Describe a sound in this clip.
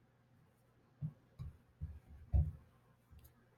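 Playing cards tap softly on a tablecloth.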